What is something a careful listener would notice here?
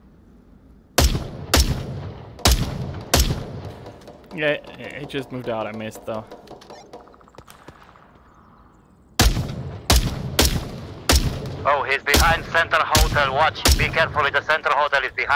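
A rifle fires sharp, loud single shots at close range.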